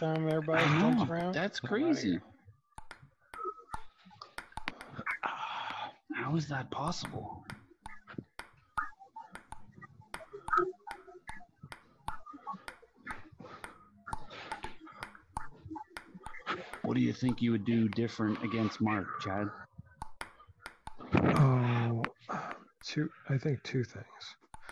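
A ping-pong ball taps back and forth against paddles and a table.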